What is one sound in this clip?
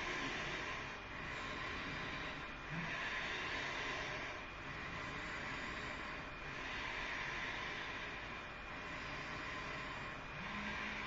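A woman breathes slowly and deeply, close by.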